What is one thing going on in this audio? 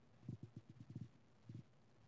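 Footsteps thud softly on a hard floor.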